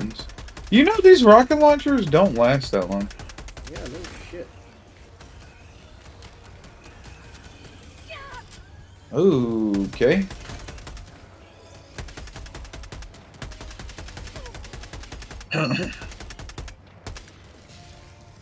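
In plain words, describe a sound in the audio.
An automatic gun fires in rapid bursts.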